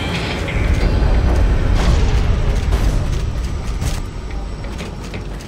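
A low mechanical rumble drones steadily.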